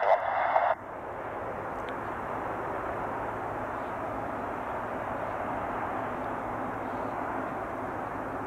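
A jet engine roars steadily in the distance.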